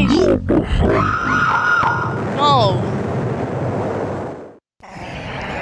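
An explosion bursts and crackles.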